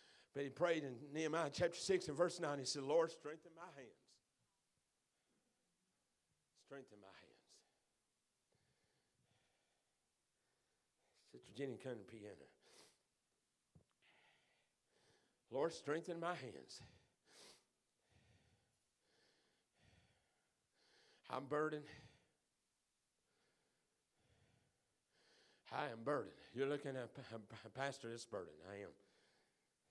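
A man speaks calmly into a microphone over loudspeakers in an echoing hall, pausing between phrases.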